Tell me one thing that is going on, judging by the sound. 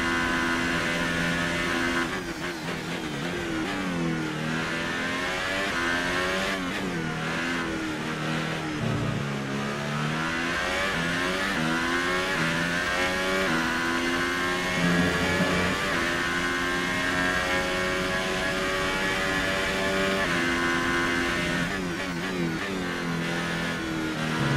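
A racing car engine screams at high revs, dropping in pitch when braking and rising again as it speeds up.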